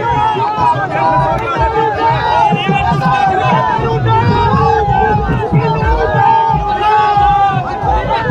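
A large crowd of men shouts and chants loudly outdoors.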